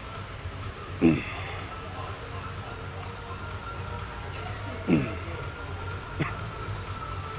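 A man grunts loudly with effort.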